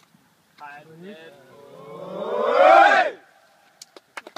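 A group of young men whoop and cheer loudly outdoors.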